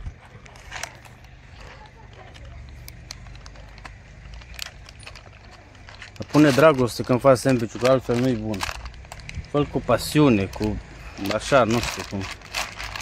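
A plastic wrapper rustles and crinkles close by.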